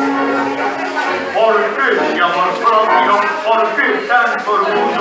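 Music plays through a loudspeaker in a large room.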